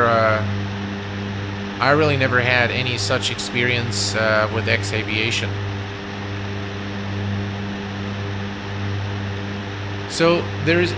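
Propeller engines drone steadily.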